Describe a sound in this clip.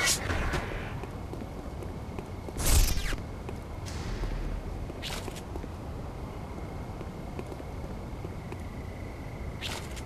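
A pistol fires several sharp shots.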